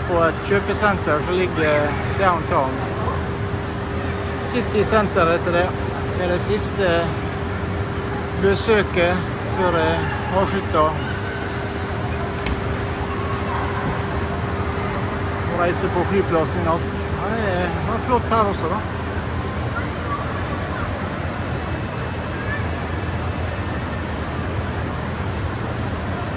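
A crowd of shoppers murmurs in a large echoing hall.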